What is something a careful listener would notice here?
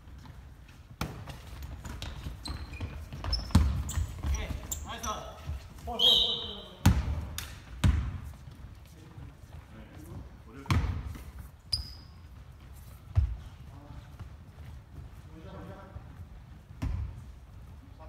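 A basketball bounces with loud thuds in a large echoing gym.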